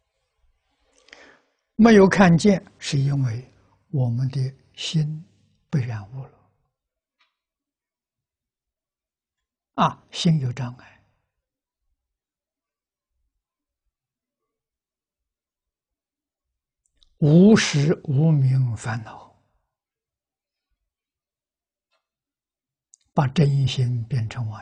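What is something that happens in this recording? An elderly man speaks calmly with long pauses, close to a clip-on microphone.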